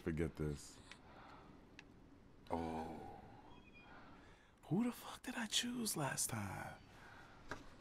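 A young man talks and laughs close to a microphone.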